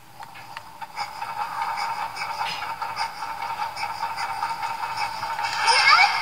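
Game music and effects play from a small console speaker.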